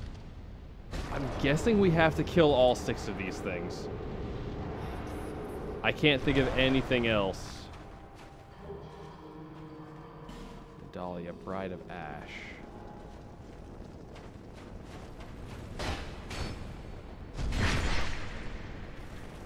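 A sword strikes with heavy hits.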